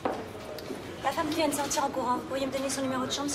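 A woman speaks calmly to a man.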